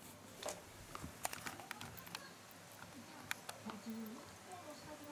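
A dog gnaws and crunches on a chew toy.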